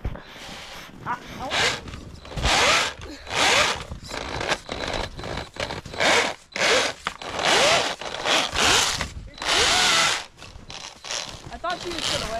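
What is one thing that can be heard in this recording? A toy motor whirs loudly in repeated bursts.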